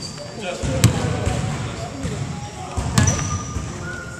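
A basketball bounces loudly on a hardwood floor in an echoing hall.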